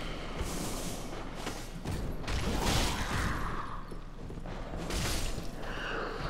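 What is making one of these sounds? A fireball whooshes and bursts.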